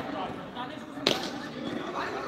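A cricket bat sharply hits a ball.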